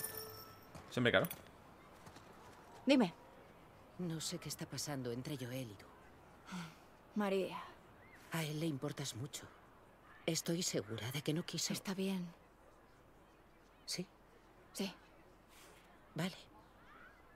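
A young woman answers softly and briefly.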